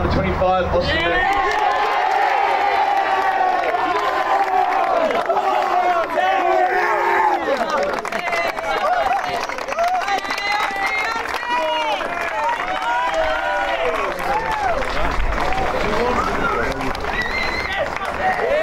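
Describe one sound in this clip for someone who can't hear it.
A group of young men chant and cheer loudly together outdoors.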